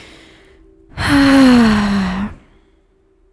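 A young woman close to a microphone lets out a long, loud cry that falls in pitch.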